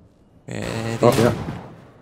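A blaster rifle fires laser shots.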